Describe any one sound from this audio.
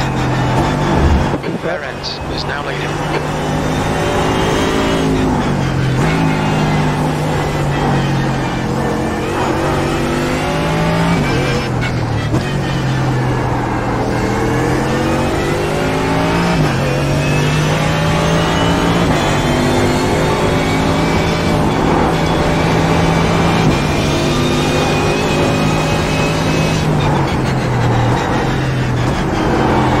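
A racing car engine roars loudly, revving up through the gears and dropping as it shifts down.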